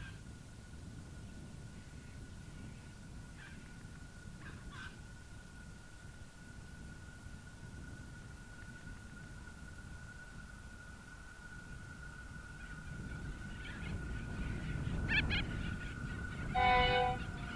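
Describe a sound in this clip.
A diesel train rumbles closer, growing louder.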